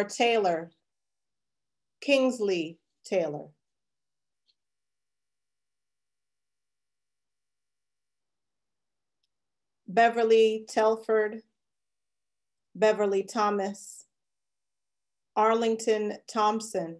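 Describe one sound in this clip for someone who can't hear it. A woman reads out calmly over an online call, with pauses between phrases.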